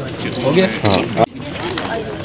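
A group of men chatter loudly close by.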